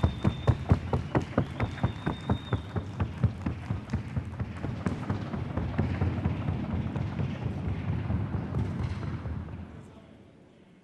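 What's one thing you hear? A horse's hooves beat fast and evenly on a wooden board.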